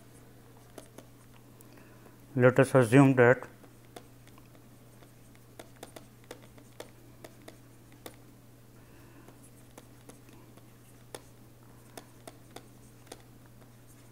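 A pen taps and scratches softly on a writing surface.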